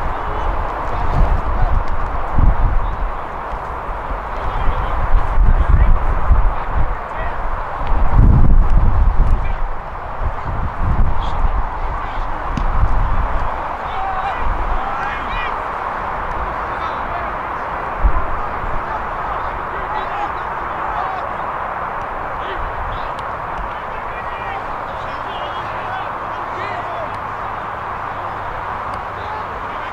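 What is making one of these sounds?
Players shout to each other in the distance across an open field.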